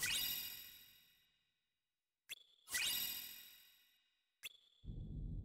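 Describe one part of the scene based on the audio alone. A bright shimmering chime rings out and slowly fades, twice.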